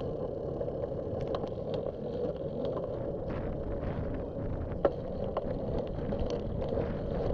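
Bicycle tyres roll over pavement with small rattles and clicks.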